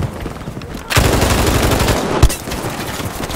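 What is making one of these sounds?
A heavy machine gun fires in a rapid, loud burst.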